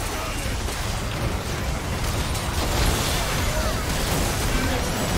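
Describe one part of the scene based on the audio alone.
Magic blasts and explosions burst and crackle in a video game battle.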